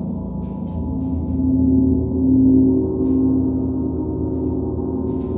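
A large gong is played with a mallet and swells louder.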